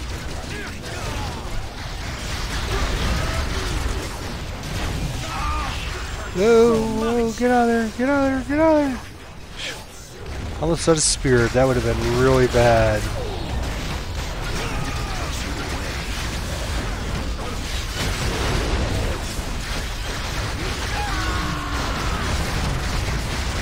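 Energy blasts fire in quick bursts.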